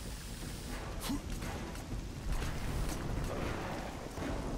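Footsteps thud on a stone ledge.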